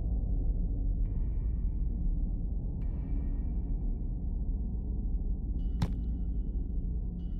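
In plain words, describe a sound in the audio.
Short ringing chimes sound a few times.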